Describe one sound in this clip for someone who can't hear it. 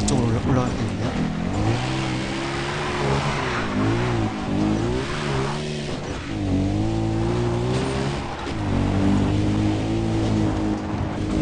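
A quad bike engine revs up and down as it drives.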